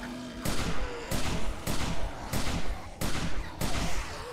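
Explosions boom and roar with flames.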